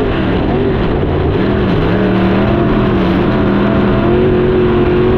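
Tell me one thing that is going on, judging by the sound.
A race car engine roars loudly up close, its pitch shifting as it accelerates.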